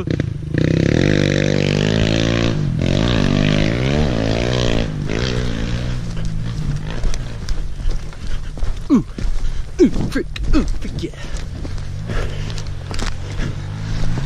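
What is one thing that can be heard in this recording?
A motorcycle engine drones and revs up and down on a bumpy ride.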